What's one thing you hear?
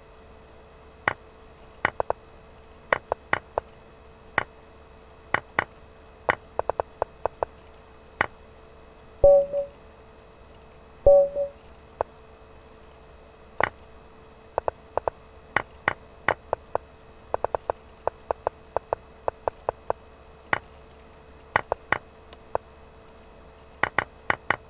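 Chess pieces click sharply as moves are made in quick succession.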